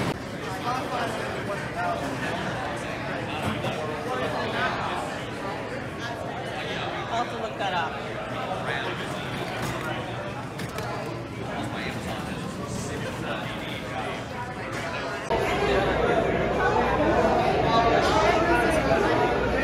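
A crowd of men and women chatters in a large room.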